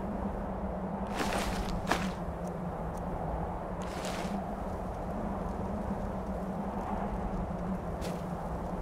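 Wind blows steadily across open snow.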